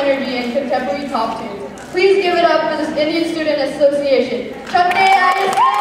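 A young woman speaks through a microphone in a large hall.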